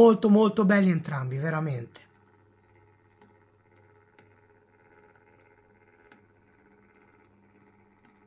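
A small turntable motor hums faintly and steadily.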